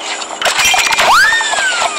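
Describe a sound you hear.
A juicer machine whirs as it squeezes.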